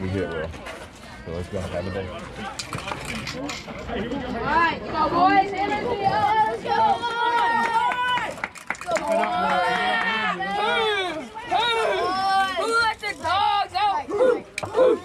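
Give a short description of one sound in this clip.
Young girls chant and cheer loudly outdoors.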